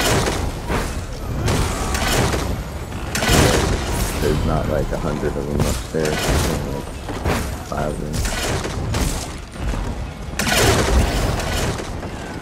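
Magic spells burst and crackle in rapid bursts.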